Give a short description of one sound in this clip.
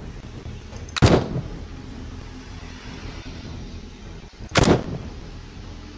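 A rifle fires two loud shots with a short echo.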